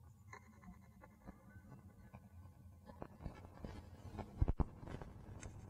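A gun's metal parts click as it is handled.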